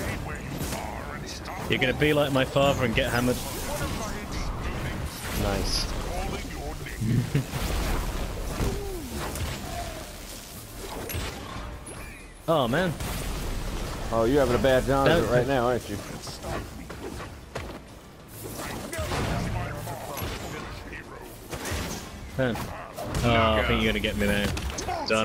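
Blows thud as figures fight.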